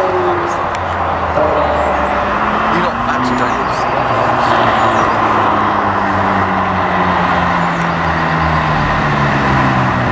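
A second sports car engine growls as the car drives closer and revs.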